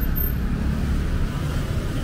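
Motorcycles pass by on a wet street.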